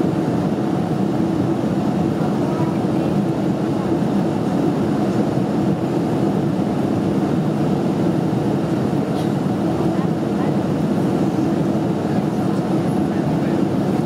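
Jet engines roar steadily inside an airliner cabin in flight.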